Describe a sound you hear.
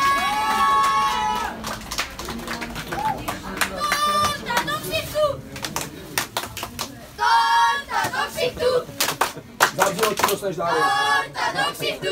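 Children sing and shout loudly close by.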